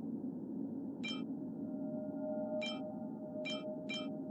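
Short bright game menu chimes ring out as items are selected.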